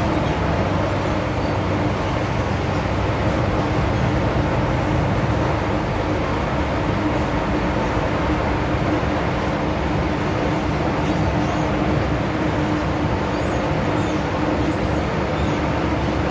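A subway train rumbles and roars steadily along the tracks.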